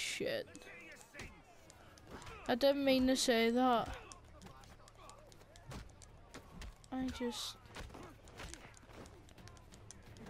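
Fists thud against bodies.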